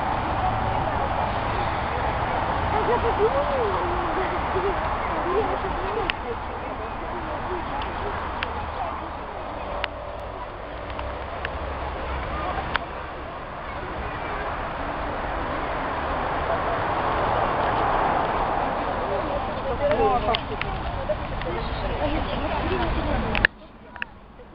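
Wind rumbles across an outdoor microphone.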